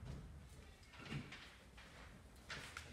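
An office chair rolls across a floor.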